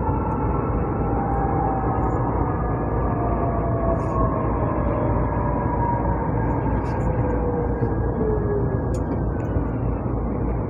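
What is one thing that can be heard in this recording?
A train's motor whines and slowly falls in pitch.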